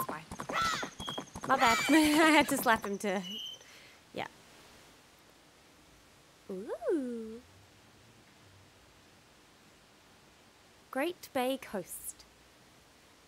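A young woman talks animatedly and close into a microphone.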